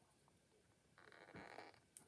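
A plastic lid rubs and squeaks as it is twisted.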